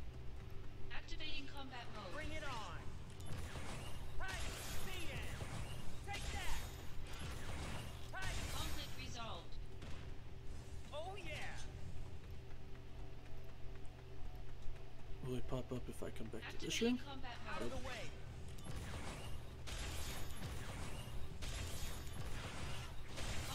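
Fantasy battle sound effects whoosh and swell in bursts.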